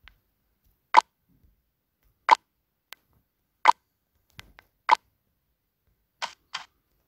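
Short electronic clicks sound one after another.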